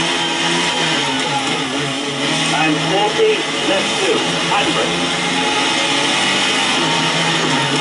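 A racing car engine drones and revs steadily through small loudspeakers.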